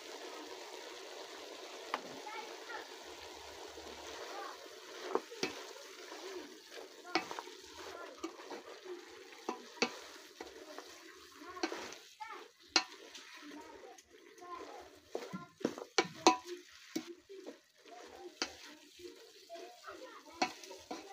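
Food bubbles and simmers in a pot.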